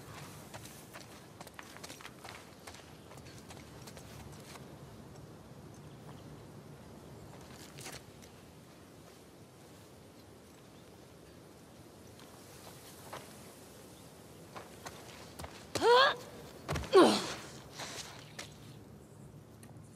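Footsteps crunch on wet stone and gravel.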